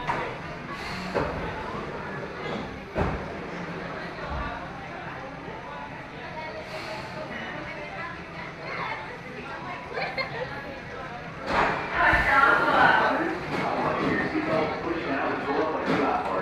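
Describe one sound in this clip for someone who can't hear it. A roller coaster train rolls slowly along its track with a rattling clatter.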